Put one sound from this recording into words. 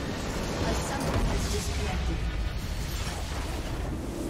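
A loud magical blast booms as a structure is destroyed.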